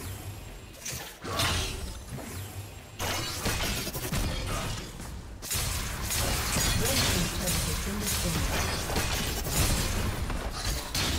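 Game combat sound effects burst and clash as spells are cast.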